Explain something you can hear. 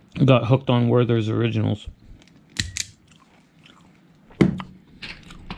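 A crimping tool clicks shut on a wire terminal.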